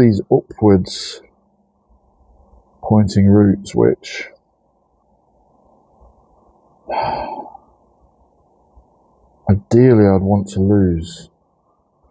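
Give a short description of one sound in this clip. Fingers rustle and pull through dry roots and crumbling soil.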